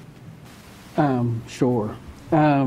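A woman speaks clearly into a microphone.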